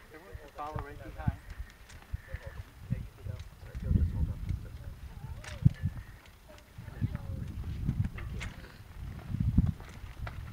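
The wheels of a cart roll over concrete.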